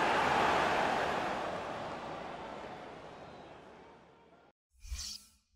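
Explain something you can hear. A large stadium crowd roars, then fades away.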